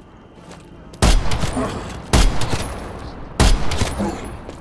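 Gunshots crack loudly in bursts.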